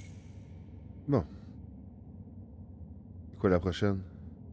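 A man speaks briefly into a close microphone, in short animated bursts.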